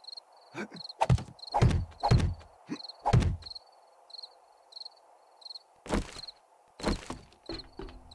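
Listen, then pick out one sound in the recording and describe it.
Footsteps thud heavily on a wooden ladder.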